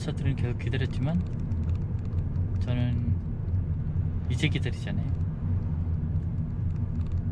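A car's engine and tyres hum steadily on the road from inside the car.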